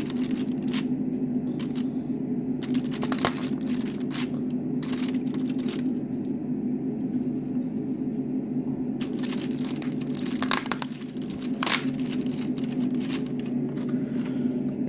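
Cardboard and foil crinkle and rustle close by.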